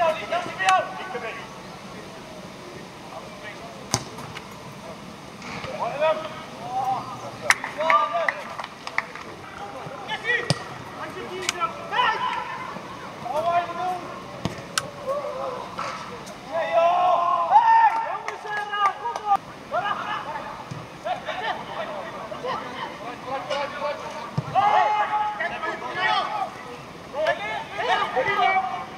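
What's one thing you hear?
Men shout and call out to each other across an open pitch.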